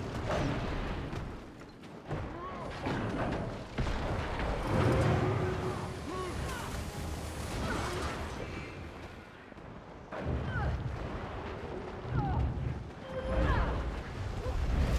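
Magic blasts and weapon hits crackle and thud in a fight.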